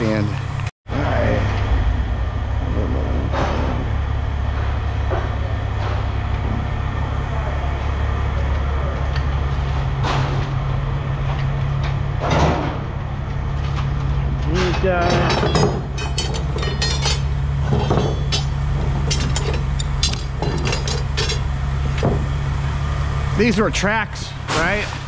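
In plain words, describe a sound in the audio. A machine hums steadily and low.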